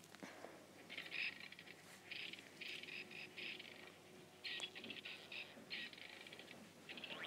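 A safe dial clicks rapidly as it turns.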